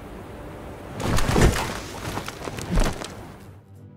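A thick rope creaks and rustles as it is climbed.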